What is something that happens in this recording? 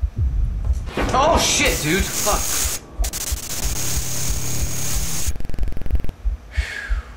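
Loud static hisses and crackles.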